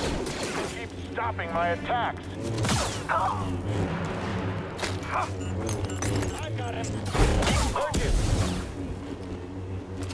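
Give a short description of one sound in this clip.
Lightsaber blades swing and clash in quick strikes.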